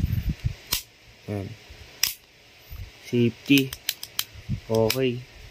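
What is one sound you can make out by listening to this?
The metal parts of an airsoft pistol click sharply as it is handled.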